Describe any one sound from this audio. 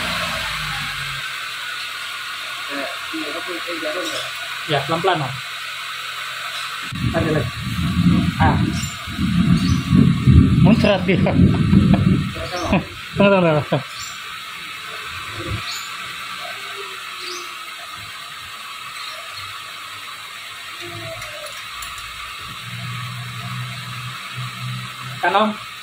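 Metal parts clink and knock close by.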